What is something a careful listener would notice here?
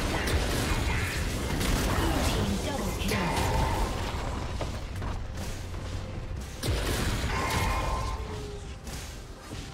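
Fantasy spell effects whoosh, crackle and clash in a busy battle.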